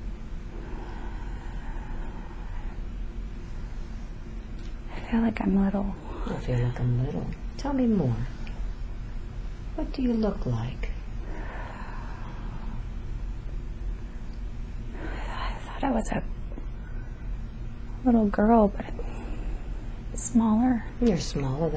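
A young woman breathes heavily in her sleep.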